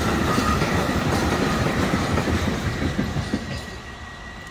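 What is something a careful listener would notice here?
A freight train rumbles and clatters past on the tracks, then fades away.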